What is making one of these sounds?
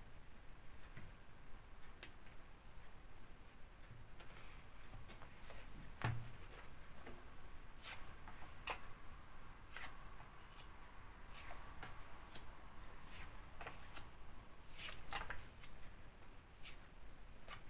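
Cards tap and slide onto a table.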